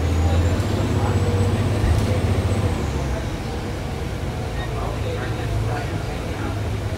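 A train rumbles steadily along its track, heard from inside the carriage.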